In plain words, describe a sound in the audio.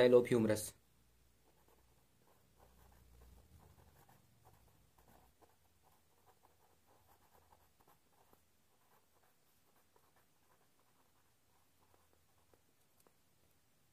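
A pen writes on paper.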